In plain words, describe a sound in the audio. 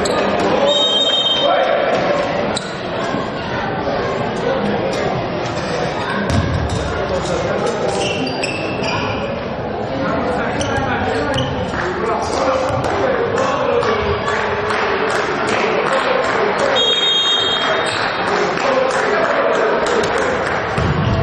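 Young men shout and call out to each other in a large echoing sports hall.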